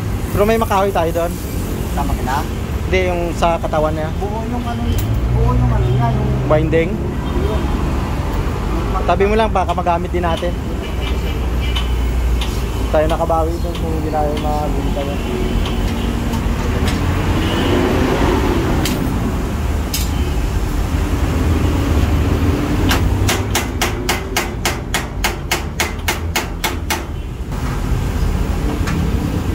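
Metal tools clank and scrape against a machine.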